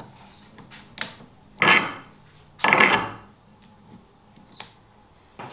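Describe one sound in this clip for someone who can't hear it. Metal parts click and scrape as they are fitted together by hand.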